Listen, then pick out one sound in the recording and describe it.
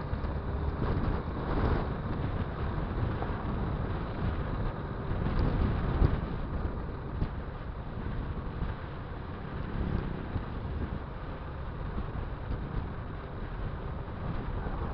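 Tyres rumble over a dirt road.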